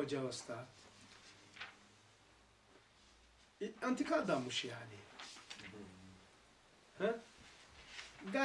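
An elderly man reads aloud slowly and calmly, close by, with pauses.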